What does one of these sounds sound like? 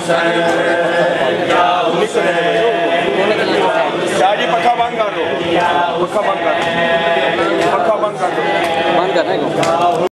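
Men chant loudly together through a loudspeaker in an echoing hall.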